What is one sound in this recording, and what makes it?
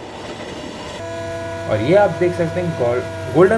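A diesel locomotive engine drones steadily.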